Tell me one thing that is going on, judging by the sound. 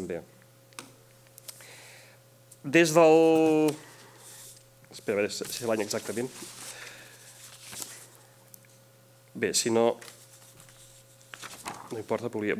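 A man speaks haltingly through a microphone in a large room.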